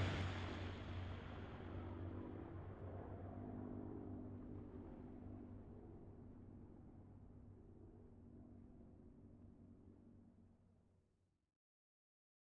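Aircraft engines drone steadily and slowly fade away.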